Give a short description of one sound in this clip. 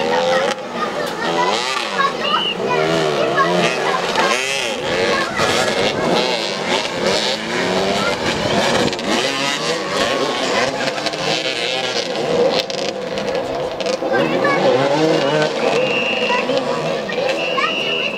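Several motorcycle engines rev up and down close by.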